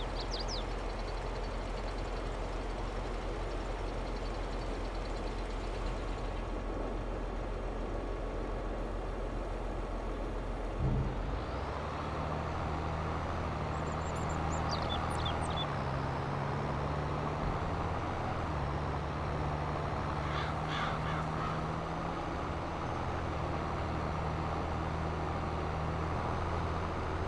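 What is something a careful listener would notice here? A tractor engine hums steadily and then picks up as the tractor drives away.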